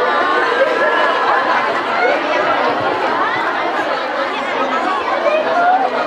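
A crowd of women chatters all around at once.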